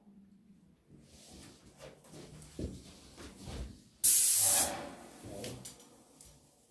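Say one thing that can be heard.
A paint sprayer hisses in short bursts.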